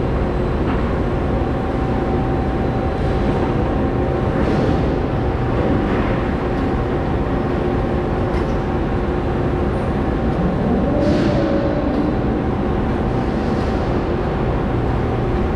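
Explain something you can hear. A steady machine hum fills a large echoing hall.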